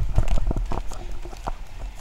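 A man's footsteps scuff on pavement close by.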